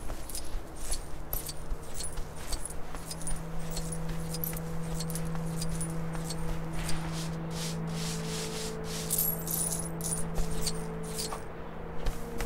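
A hum of building energy rings steadily.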